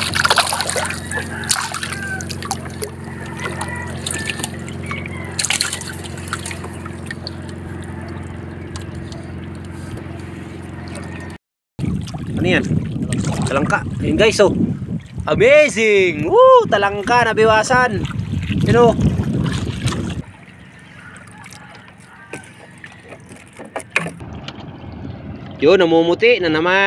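Water laps and splashes against a small boat's hull.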